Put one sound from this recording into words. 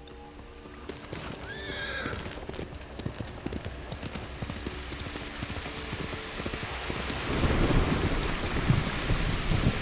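Wind rushes past, swelling louder toward the end.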